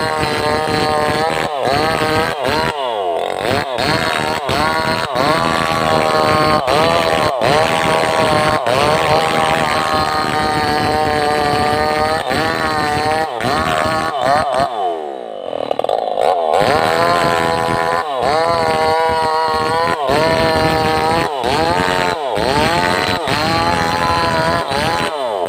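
A chainsaw engine roars loudly and revs up and down while cutting into a tree trunk.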